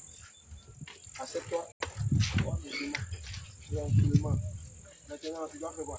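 Several adults talk and call out nearby outdoors.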